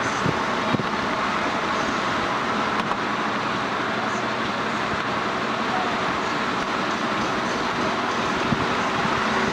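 Tyres hum steadily on a road as a car drives along.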